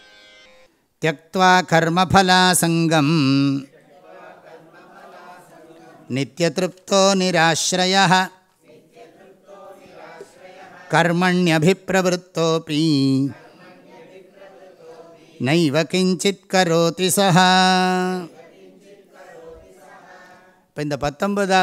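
An elderly man chants verses slowly in a steady voice into a microphone, with pauses between lines.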